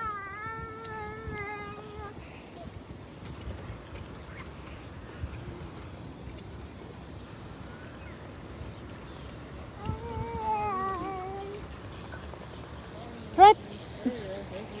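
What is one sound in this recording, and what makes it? Stroller wheels roll and rumble over a wooden walkway.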